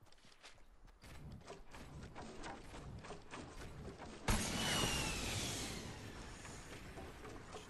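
Wooden building pieces snap into place with rapid knocks.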